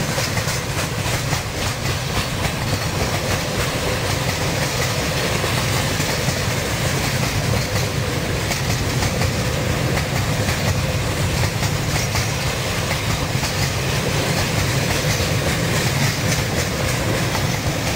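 Steel wheels clatter rhythmically over rail joints.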